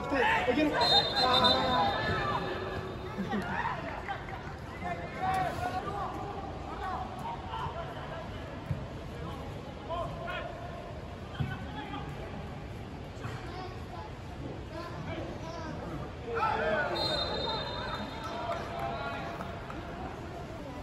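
Young men shout to each other across an open outdoor field.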